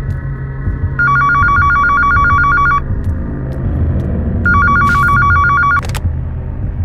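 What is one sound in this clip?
A telephone rings with a loud, repeating electronic trill.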